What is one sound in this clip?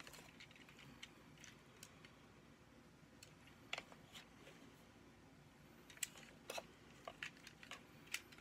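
Plastic parts of a toy click and snap as hands twist them.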